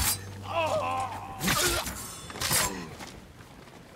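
A blade strikes into a body with sharp thuds.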